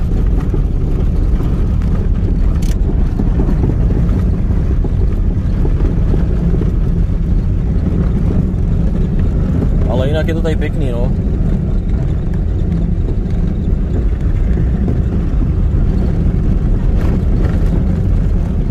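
Tyres rumble over a bumpy dirt road.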